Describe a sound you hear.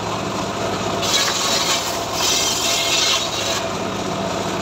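A saw blade screeches as it cuts through wood.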